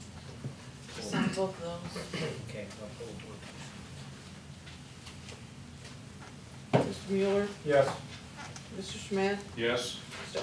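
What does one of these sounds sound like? A middle-aged man speaks calmly in short phrases.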